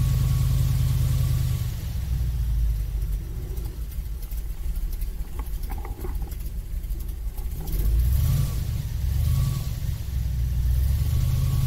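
Water rushes and splashes behind a speeding boat.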